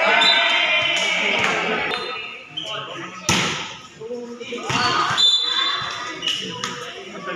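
A crowd of young people cheers and shouts in an echoing hall.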